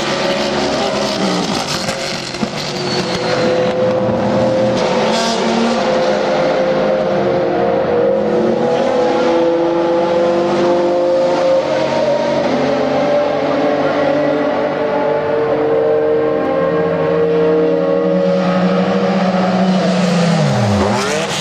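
Racing car engines roar loudly around a track.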